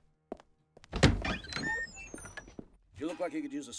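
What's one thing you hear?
A heavy wooden door creaks open.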